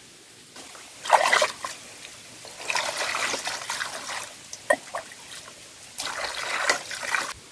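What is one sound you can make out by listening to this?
Water splashes as a ladle scoops and pours it.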